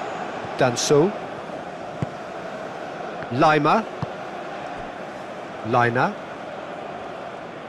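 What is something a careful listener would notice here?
A large crowd murmurs and roars steadily in a big stadium.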